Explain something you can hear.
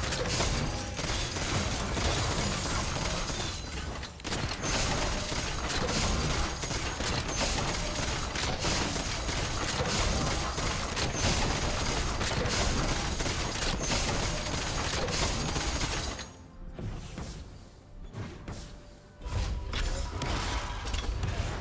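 Game combat effects crackle and burst with rapid hits and blasts.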